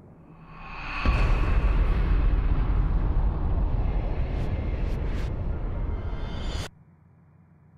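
Bubbles rush and rumble underwater.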